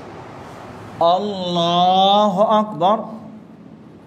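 A man chants a short call through a loudspeaker in an echoing hall.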